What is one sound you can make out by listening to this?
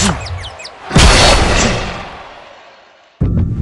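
A fiery blast whooshes and roars.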